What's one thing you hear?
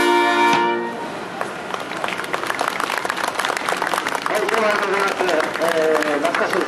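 A brass band plays outdoors.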